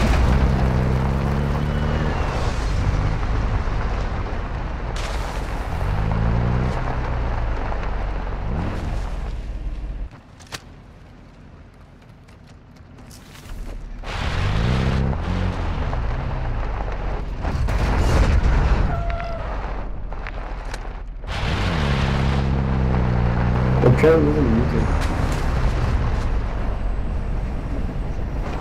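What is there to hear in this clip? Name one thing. A vehicle engine roars and revs up and down as it drives over rough ground.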